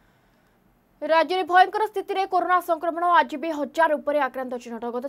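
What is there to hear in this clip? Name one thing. A young woman speaks clearly into a microphone, reading out the news.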